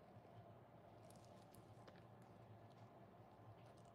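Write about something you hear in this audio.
A plastic bottle squirts liquid soap.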